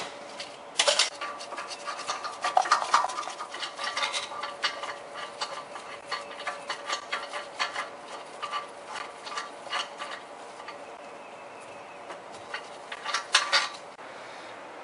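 Metal parts clink softly as they are handled.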